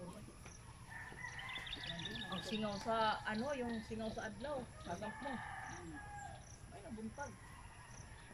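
A woman speaks nearby with animation.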